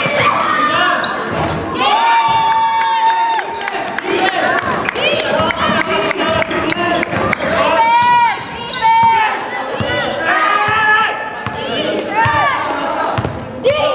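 Young men shout and call out to each other.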